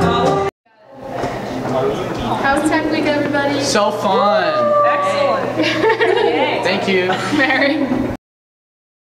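Several young people chatter and laugh excitedly close by.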